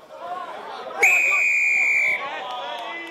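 A referee blows a long, shrill whistle blast.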